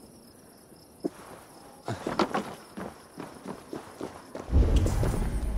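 Footsteps thud quickly on wooden planks and stone.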